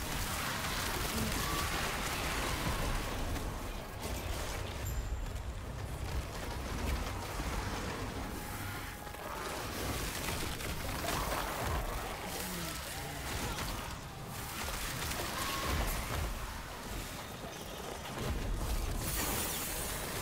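Spells crackle and burst in rapid combat.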